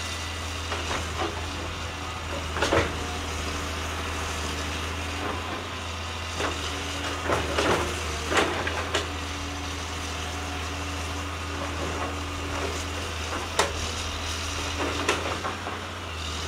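Branches snap and crack as an excavator tears through brush.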